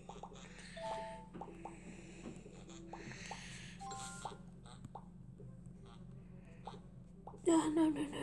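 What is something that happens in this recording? Bubbles pop in a game.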